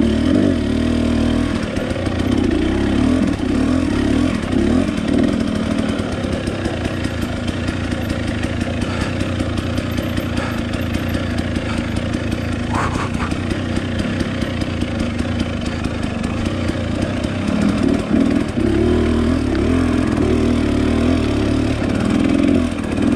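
Tyres crunch over dirt and twigs on a forest trail.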